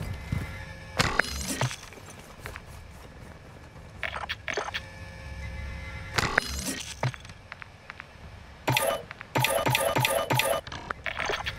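Menu selections chime and click electronically.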